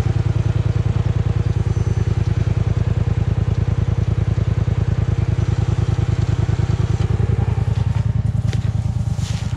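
A quad bike engine idles with a steady, throbbing rumble close by.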